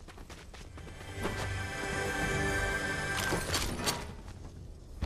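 A treasure chest hums with a rising, ringing tone.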